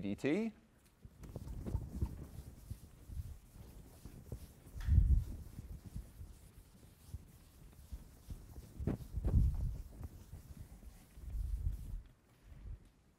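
An eraser rubs across a chalkboard in low, scraping sweeps.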